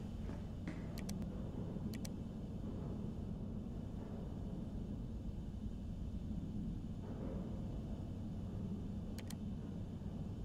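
A short menu click sounds as a page turns.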